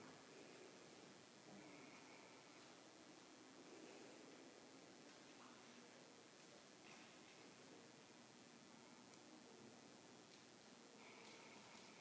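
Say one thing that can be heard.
A man speaks softly and slowly into a microphone.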